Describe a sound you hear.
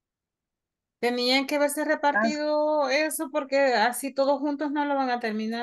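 A woman speaks through an online call.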